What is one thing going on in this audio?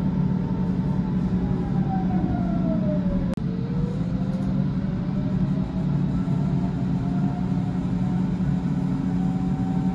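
A passing train hums with a whine that falls and then rises again.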